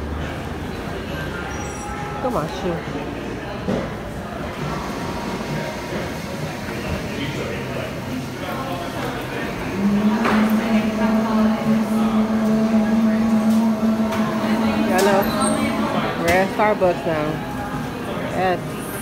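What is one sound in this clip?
A crowd of men and women chatters nearby indoors.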